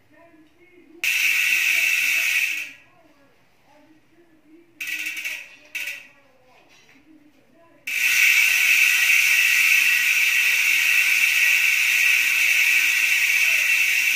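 A bicycle wheel's hub buzzes loudly as the wheel spins freely.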